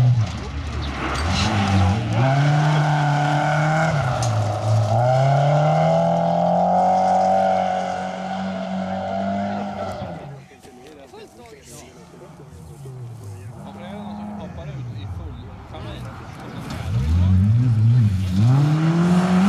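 Gravel crunches and sprays under a car's tyres.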